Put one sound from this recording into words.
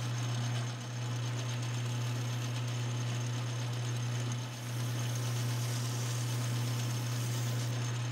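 Sandpaper rubs against a spinning metal rod.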